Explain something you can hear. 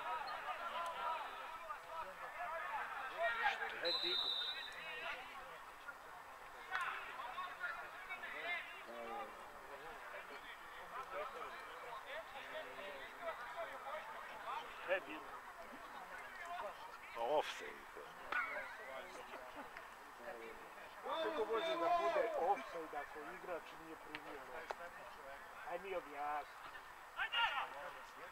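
Young men shout to each other across an open field outdoors.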